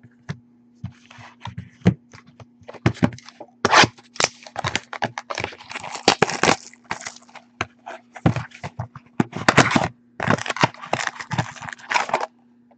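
Cardboard boxes tap and scrape as hands handle them.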